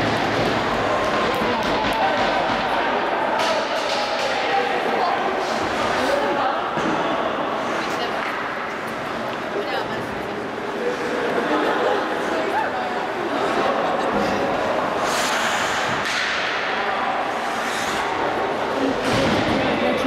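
A crowd murmurs and chatters in a large echoing arena.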